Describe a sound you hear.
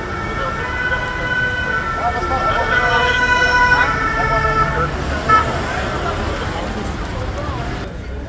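A crowd of people shouts and chatters outdoors at a distance.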